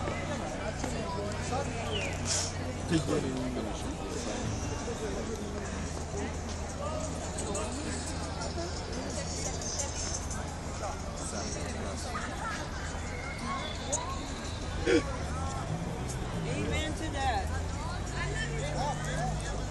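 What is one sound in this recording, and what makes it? A crowd of young people chatter outdoors nearby.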